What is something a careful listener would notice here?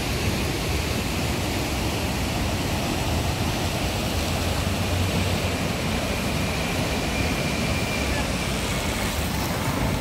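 Waves crash and wash onto a beach in a steady roar.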